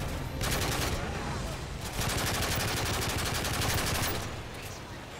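Rapid gunfire rattles loudly with an echo.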